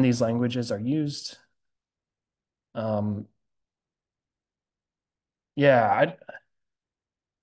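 A man speaks calmly into a close microphone in short bursts.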